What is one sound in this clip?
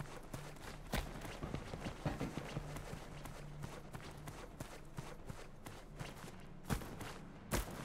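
Footsteps crunch quickly on gravel.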